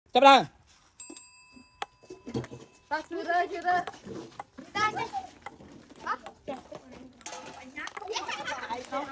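Young boys talk and exclaim excitedly nearby, outdoors.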